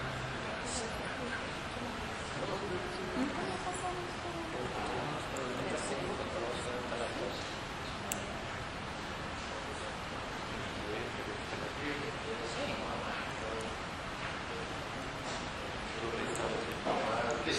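Several adults talk quietly at a distance in a room.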